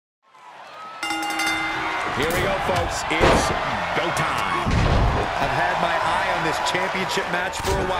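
A crowd cheers loudly in a large arena.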